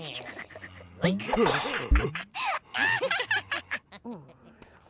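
A man speaks in a cartoonish voice with animation.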